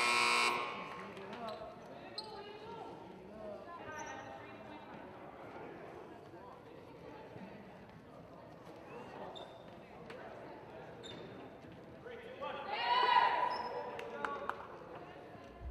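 Young women call out to each other across an echoing gym.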